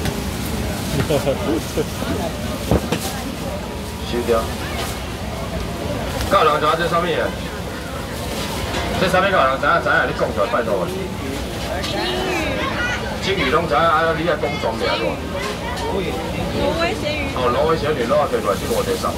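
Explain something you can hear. A man calls out loudly to a crowd, like an auctioneer.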